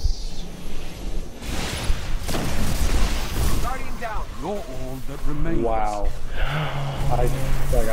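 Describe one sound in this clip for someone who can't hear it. Explosions boom and rumble in a video game.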